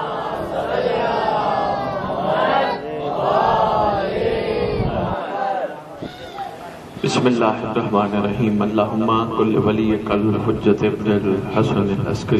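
A man recites with feeling through a microphone, his voice rising and falling.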